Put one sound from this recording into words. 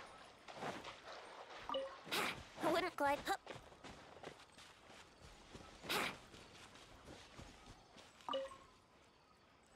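Footsteps rustle through grass as a game character runs.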